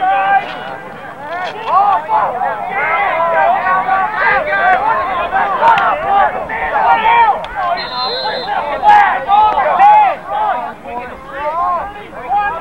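A crowd of young men shout and call out outdoors.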